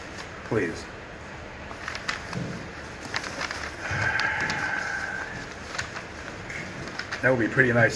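Paper sheets rustle as they are turned.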